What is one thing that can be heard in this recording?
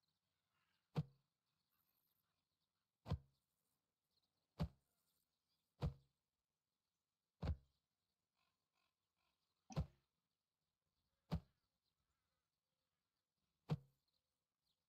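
A short soft pop sounds again and again as small objects are set down.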